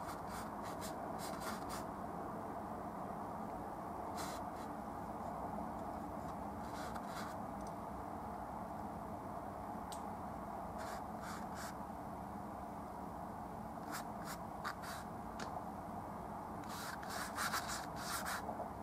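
A paintbrush scrapes and dabs softly on canvas in short bursts.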